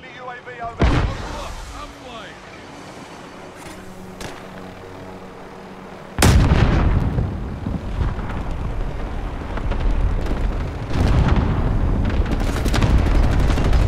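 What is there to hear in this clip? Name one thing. A helicopter's rotor thumps and roars loudly.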